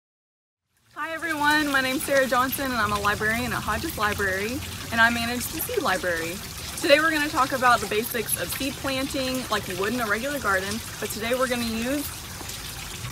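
A young woman speaks brightly and close to a microphone.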